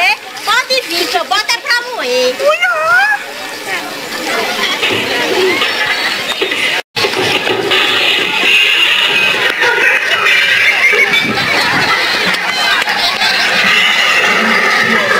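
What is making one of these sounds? A crowd of people chatters and shouts nearby.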